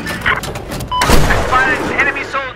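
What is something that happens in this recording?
An explosion booms on a road.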